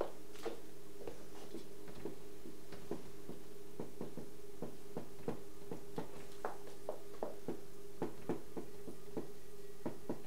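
A marker taps and squeaks on a whiteboard.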